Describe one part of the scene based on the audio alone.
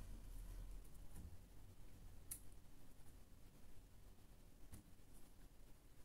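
Playing cards are set down on a cloth-covered table with soft taps.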